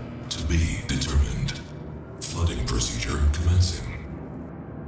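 A young man talks into a microphone close by.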